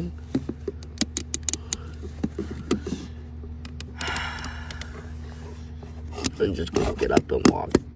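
Fingers rub against a hard plastic toy.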